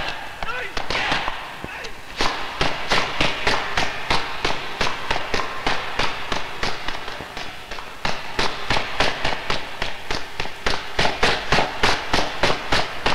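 Hurried footsteps pound rapidly up echoing stairs.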